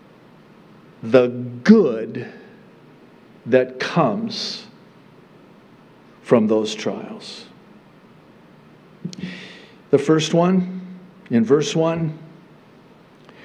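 A middle-aged man speaks slowly and deliberately into a microphone, with pauses between phrases.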